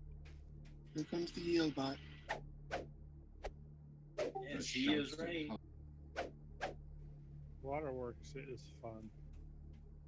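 Swords clash and clang in a game fight.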